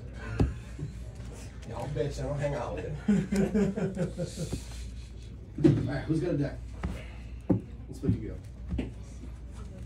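Playing cards are shuffled and riffled by hand.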